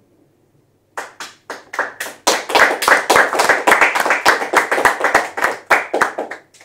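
A small audience claps loudly.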